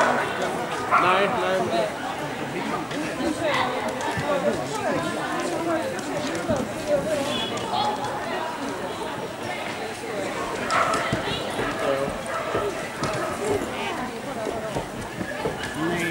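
A young woman calls out to a dog with animation in a large echoing hall.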